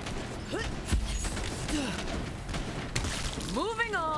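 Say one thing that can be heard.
A body bursts with a wet, heavy splatter.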